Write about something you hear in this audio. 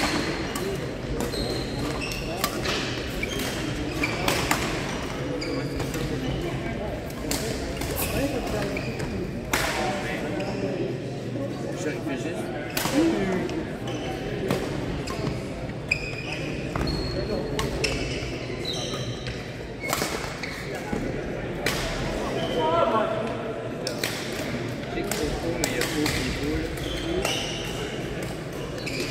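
Voices of men and women echo in a large hall.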